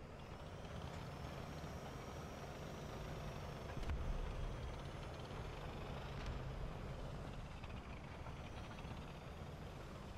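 A tank's tracks clank and squeak over sand.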